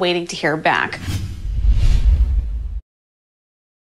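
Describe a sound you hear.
A short musical sting plays with a deep whoosh.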